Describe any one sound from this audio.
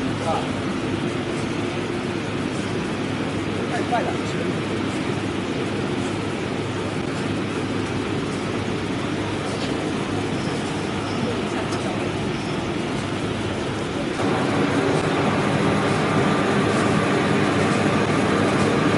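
A flexographic printing press runs at speed, with a steady mechanical hum.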